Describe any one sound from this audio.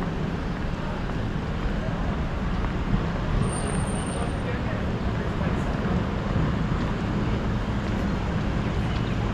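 City traffic rumbles steadily along a street outdoors.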